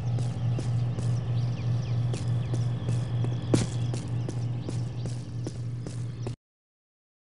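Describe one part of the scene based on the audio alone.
Footsteps tread steadily on dirt.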